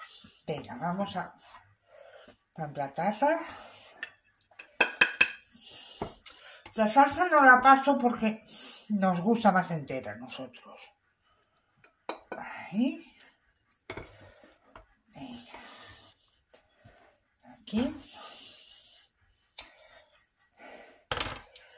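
Thick sauce sloshes as a ladle stirs it.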